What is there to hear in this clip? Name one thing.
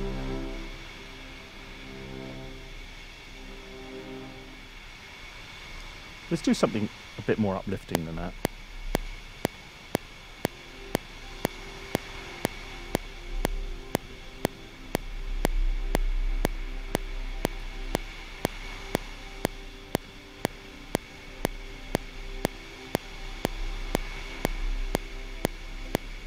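A synthesizer plays chords and notes.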